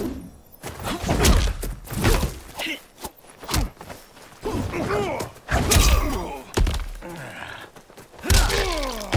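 Heavy punches and kicks thud and smack in quick bursts.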